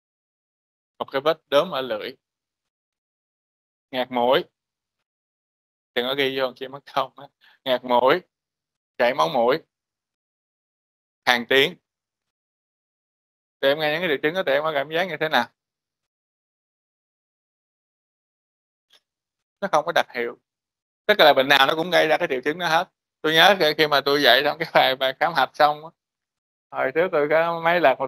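A man lectures through a microphone in an online call, speaking in short bursts with pauses.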